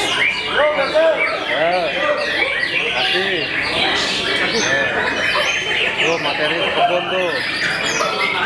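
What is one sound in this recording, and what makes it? A caged songbird sings a loud, rapid, varied song of whistles and trills.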